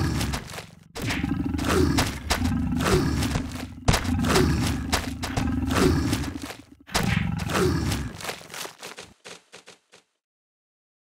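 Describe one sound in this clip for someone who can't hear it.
Teeth chomp and crunch on a soft toy.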